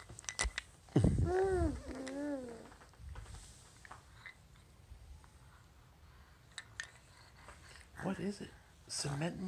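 A wooden toy car clicks and knocks as it is handled.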